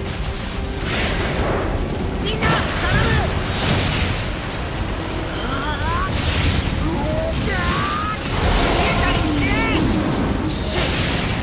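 Blades swish and slash through flesh in quick bursts.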